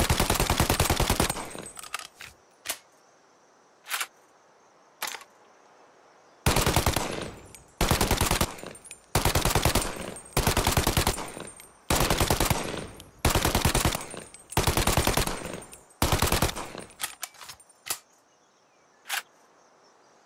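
Metallic clicks sound as a submachine gun is reloaded.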